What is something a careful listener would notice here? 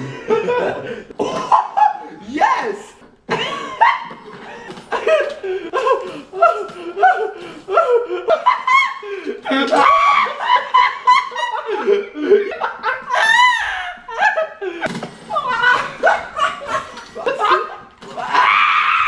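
Two young men laugh loudly close by.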